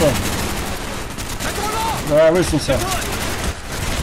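A machine gun fires a short burst.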